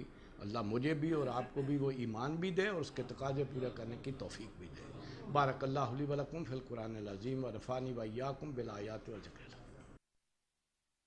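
An elderly man speaks calmly and earnestly into a close microphone.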